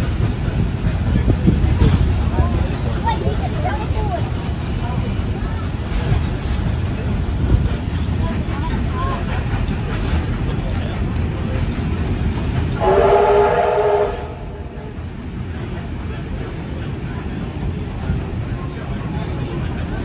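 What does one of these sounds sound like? A train rumbles steadily along the tracks, heard from a carriage window.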